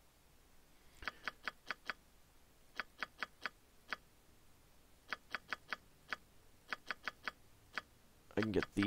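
Short, sharp interface clicks sound in quick bursts.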